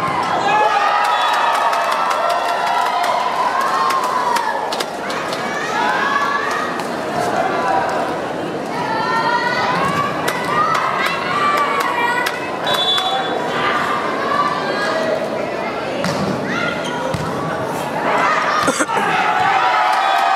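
A volleyball is struck with sharp smacks.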